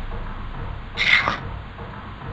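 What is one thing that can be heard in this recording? A metal switch clicks.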